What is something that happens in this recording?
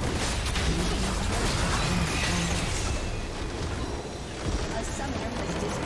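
Electronic fighting effects clash and whoosh.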